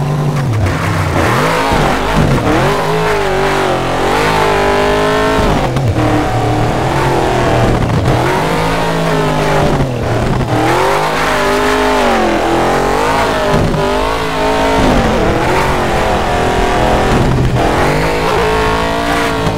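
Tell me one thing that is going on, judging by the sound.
Tyres skid and crunch on loose dirt.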